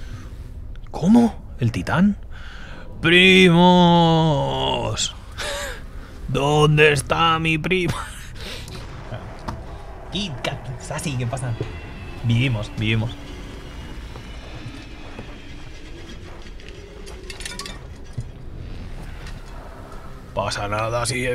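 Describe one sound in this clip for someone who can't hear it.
A young man talks into a microphone.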